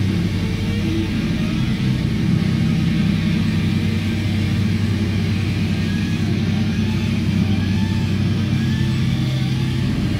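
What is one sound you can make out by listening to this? A drummer pounds a drum kit.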